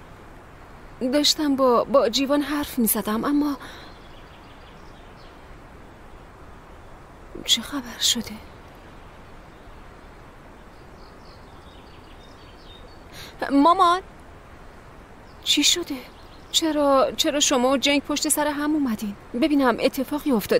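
A young woman speaks with distress close by.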